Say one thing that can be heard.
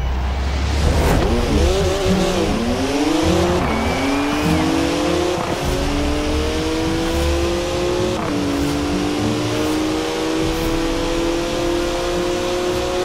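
A sports car engine roars and rises in pitch as it accelerates hard through its gears.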